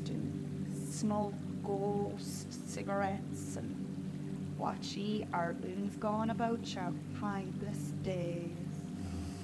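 A young woman speaks casually, close by.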